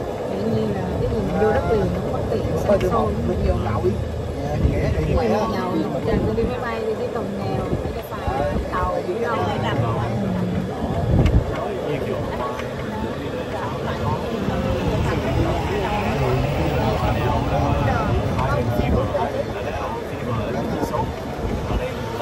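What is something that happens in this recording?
Young people chatter and talk together close by.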